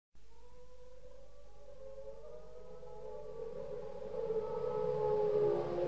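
A humpback whale sings long, drawn-out moaning calls that grow louder.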